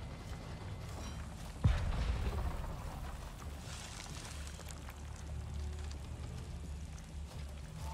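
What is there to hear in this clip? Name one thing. Wind blows steadily with a low rumble.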